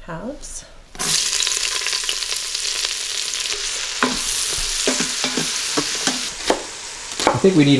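Leeks sizzle loudly as they drop into hot oil.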